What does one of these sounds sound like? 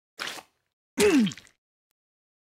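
A cartoon figure falls with a comic whooshing sound effect.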